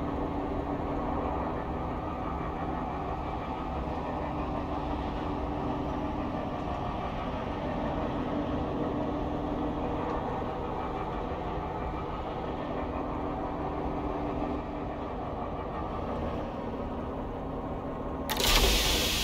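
A heavy vehicle's engine rumbles steadily.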